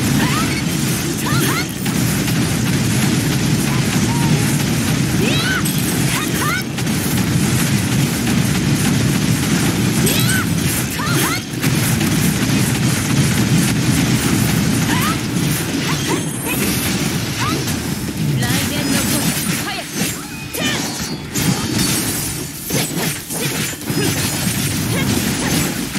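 Rapid electronic blasts and impact effects crash and clatter.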